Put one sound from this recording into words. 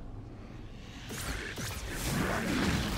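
A soft magical whoosh swells and rustles.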